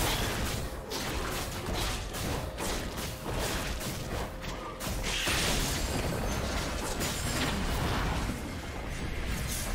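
Fantasy battle effects whoosh and crackle as spells hit.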